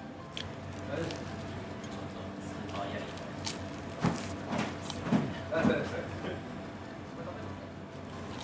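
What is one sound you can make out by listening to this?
Crisp food crunches as a man bites and chews.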